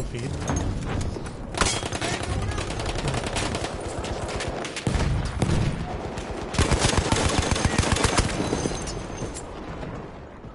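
Rapid gunfire crackles loudly.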